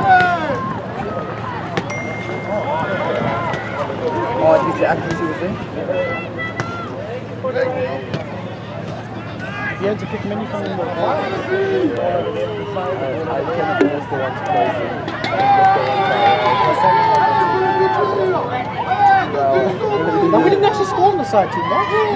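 Young women players shout and call to each other across the field.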